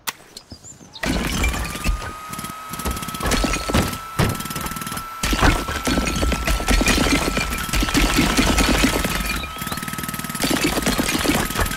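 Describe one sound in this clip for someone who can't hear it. A power saw whines and cuts loudly through wood.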